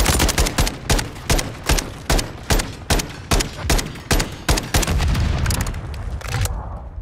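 A rifle fires in rapid single shots with sharp echoing cracks.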